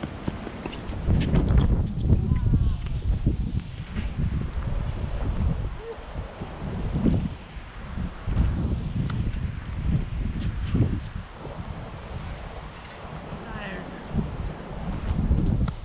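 Shoes squeak and scuff on a hard court.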